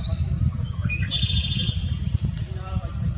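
A blackbird sings a short, buzzy, trilling song nearby.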